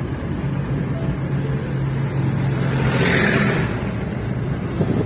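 A tractor engine rumbles close by as it passes.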